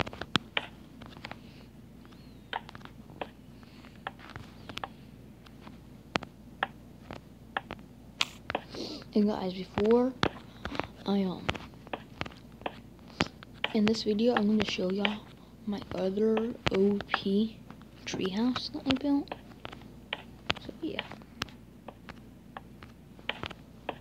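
Wooden blocks thud softly as they are placed one after another.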